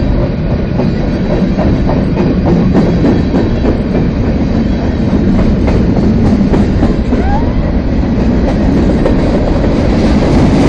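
Train wheels clack rhythmically over rail joints.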